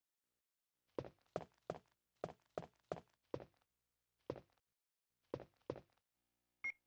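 Footsteps knock steadily on a wooden floor.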